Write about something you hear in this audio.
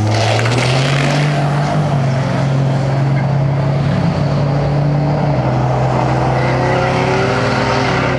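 A car engine roars loudly as the car speeds away.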